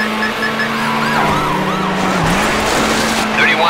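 Tyres screech while a car slides through a turn.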